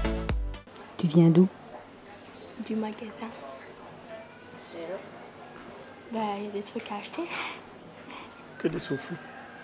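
A young woman speaks casually and laughs, close by.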